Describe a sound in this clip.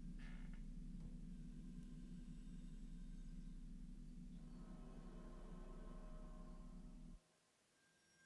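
A deep electronic synthesizer drone plays steadily, then cuts off.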